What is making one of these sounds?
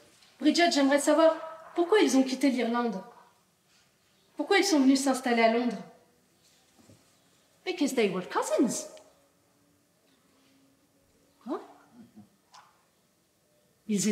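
A young woman speaks expressively in short bursts with pauses.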